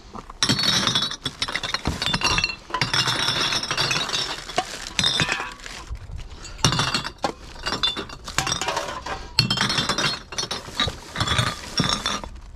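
Glass bottles clink and clatter as they are sorted by hand.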